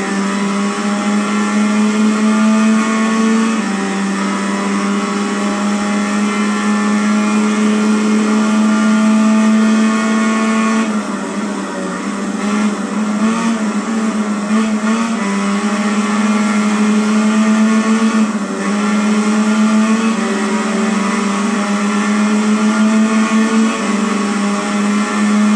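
A motorcycle engine screams at high revs, dropping in pitch as it brakes for corners and rising again as it speeds up.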